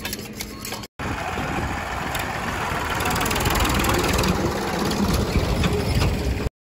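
A tractor engine rumbles loudly as it drives past.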